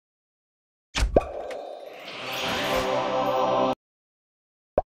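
A treasure chest opens with a bright musical flourish.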